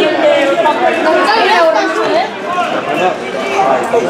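A crowd of spectators chatters and calls out close by.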